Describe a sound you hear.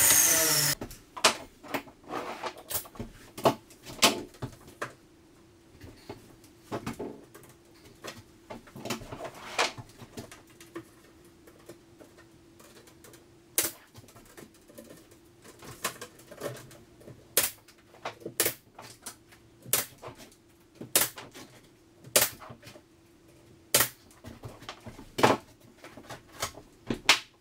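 A nail gun fires in sharp, repeated bangs.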